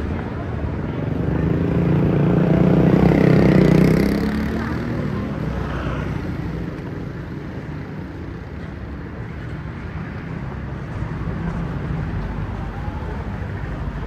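Street traffic murmurs steadily outdoors.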